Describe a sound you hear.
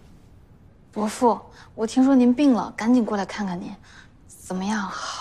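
A young woman speaks with concern, close by.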